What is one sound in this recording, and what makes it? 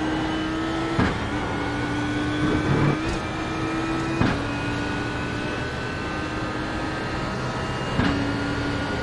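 Gears shift with sharp clunks, the engine pitch dropping each time.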